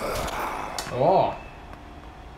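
A young man lets out a short exclamation close by.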